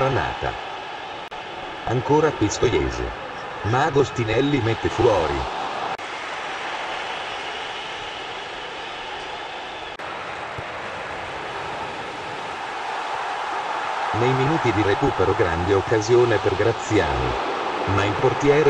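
A large stadium crowd roars steadily in the background.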